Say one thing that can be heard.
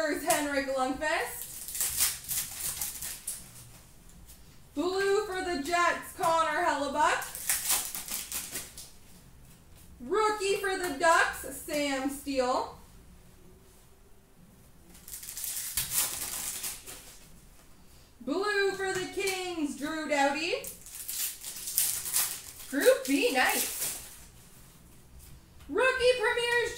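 Foil card wrappers crinkle and tear in someone's hands.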